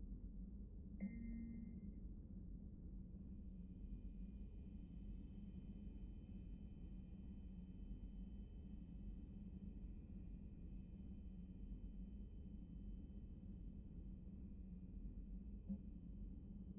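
A short electronic chime sounds as a menu item is selected.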